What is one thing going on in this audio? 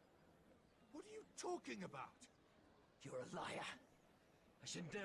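A man answers in a puzzled voice.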